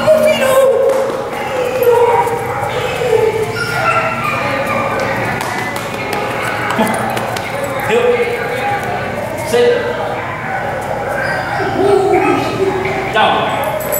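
A man speaks calmly to a dog.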